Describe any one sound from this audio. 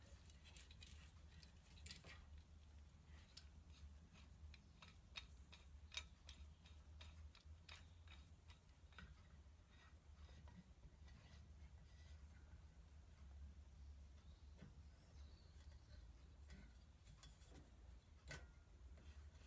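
Metal parts clink and click as they are handled close by.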